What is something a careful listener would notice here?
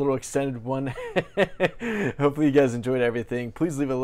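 A man laughs close to a microphone.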